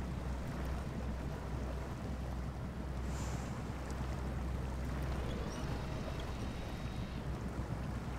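Water splashes and sloshes around tyres.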